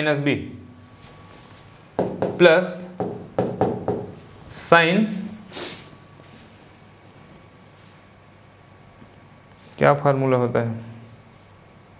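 A man speaks calmly into a close microphone, explaining in short bursts.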